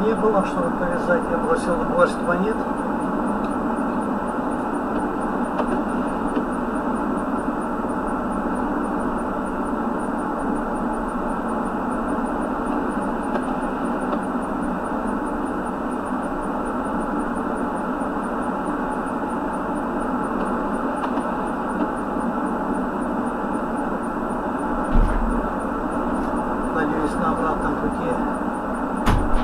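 A car drives steadily along a highway, its tyres humming on the asphalt.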